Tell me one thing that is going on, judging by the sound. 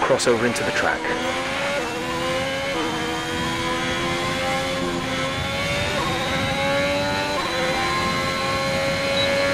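A racing car engine roars and climbs in pitch through the gears.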